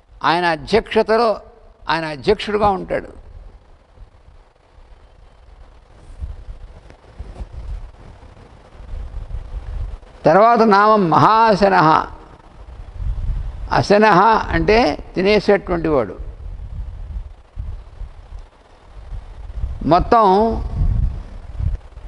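An elderly man chants slowly into a microphone, in bursts with pauses.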